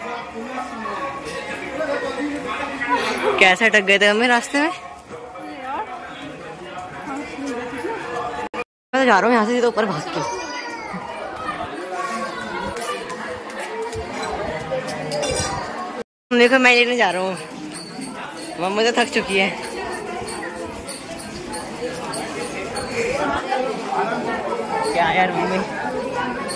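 A crowd murmurs and chatters around.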